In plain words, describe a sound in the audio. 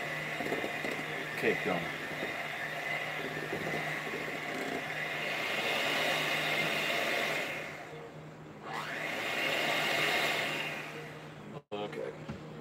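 An electric hand mixer whirs steadily, briefly pausing and then starting again.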